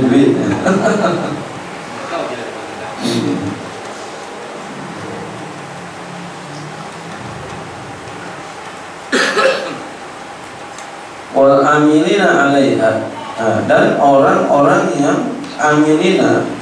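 A man speaks through a microphone in a calm, preaching tone.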